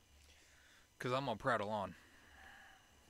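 A young man speaks briefly and loudly into a close microphone.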